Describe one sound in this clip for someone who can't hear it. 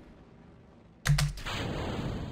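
A rocket stage separates with a sudden loud thump.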